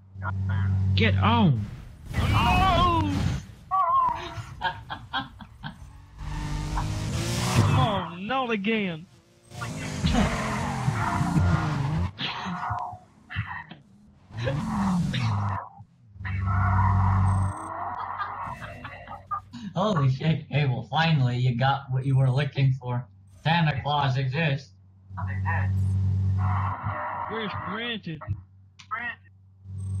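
A car engine roars at high speed.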